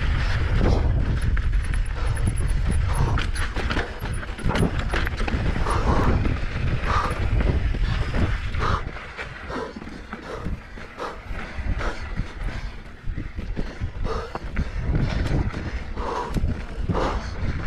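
Bicycle tyres crunch and rattle over loose dirt and rocks.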